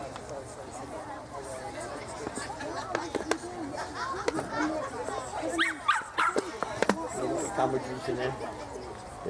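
Adults and children chatter nearby outdoors.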